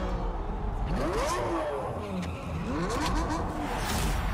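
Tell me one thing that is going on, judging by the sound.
A sports car engine revs up.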